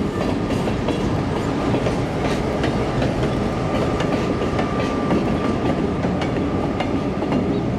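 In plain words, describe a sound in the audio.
A diesel locomotive engine throbs as it passes.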